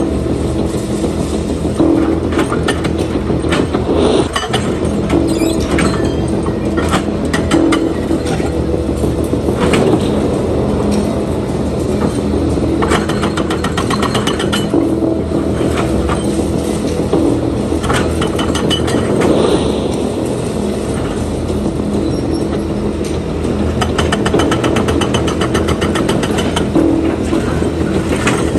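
Concrete and rubble crash and clatter as an excavator tears at a building.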